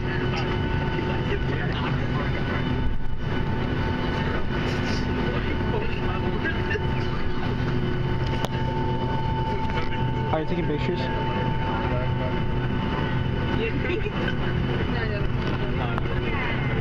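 A jet engine hums steadily and loudly nearby.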